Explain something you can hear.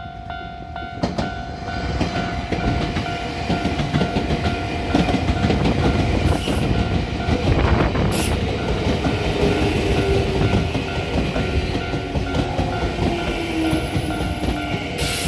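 A train rumbles and clatters past close by, loud and rushing.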